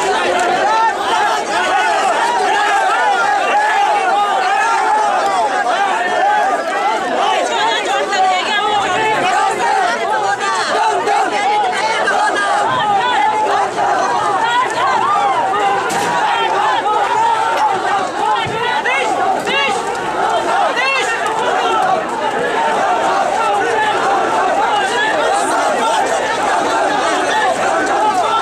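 A crowd of men shouts and chants loudly close by.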